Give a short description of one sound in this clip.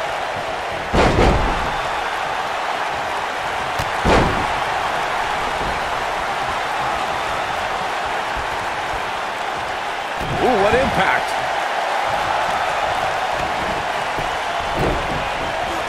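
Heavy thuds ring out as bodies hit a wrestling ring mat.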